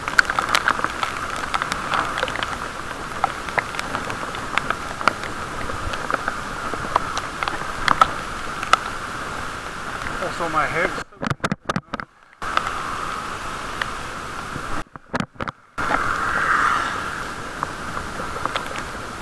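Rain patters and drips steadily outdoors.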